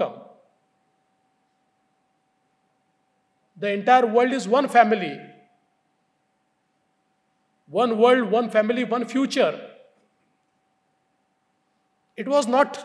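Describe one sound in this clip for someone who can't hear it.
A man speaks into a microphone in measured bursts with pauses between them.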